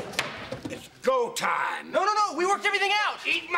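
An elderly man shouts angrily.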